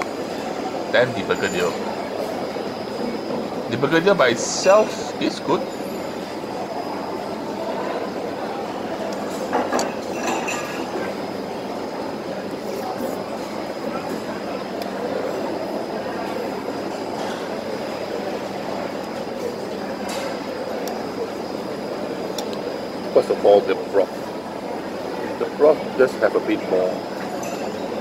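A man slurps food noisily close by.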